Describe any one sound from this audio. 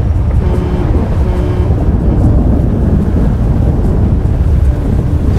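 A truck engine rumbles as it drives along a road.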